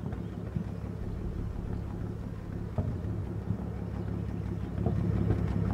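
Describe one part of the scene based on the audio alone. A tank engine rumbles close by.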